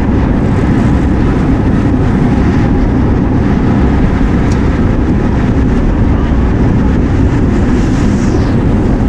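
Wind rushes loudly over a moving microphone outdoors.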